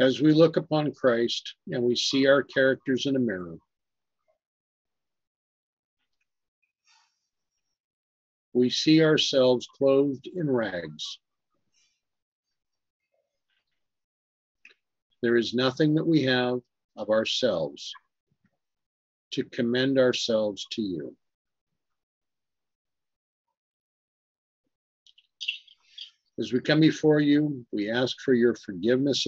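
A middle-aged man speaks calmly in bursts with pauses, heard through an online call.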